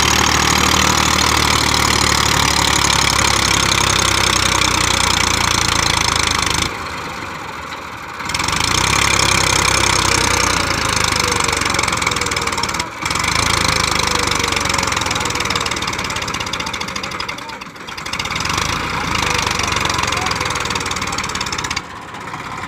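Tractor tyres churn through loose sand.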